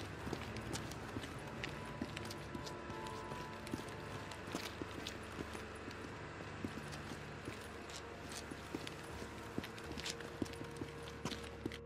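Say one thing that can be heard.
Footsteps crunch on gravel and stone.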